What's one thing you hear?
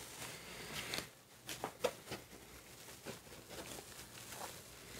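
Paper taps and crackles sharply as a sheet is handled.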